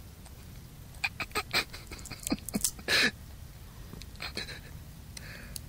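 A kitten and a puppy scuffle and rustle through grass while playing.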